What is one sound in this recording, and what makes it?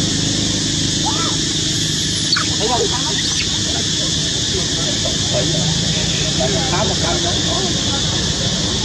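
A baby monkey squeaks in short high cries.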